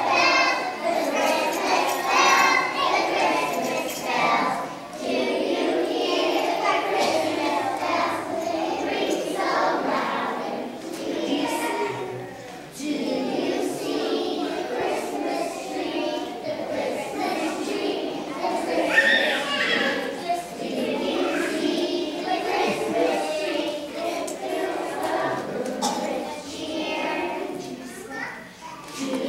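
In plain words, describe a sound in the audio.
A choir of young children sings together in a large echoing hall.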